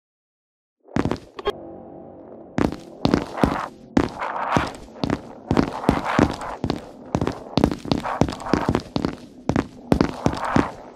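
Footsteps thud steadily on a hard floor in an echoing corridor.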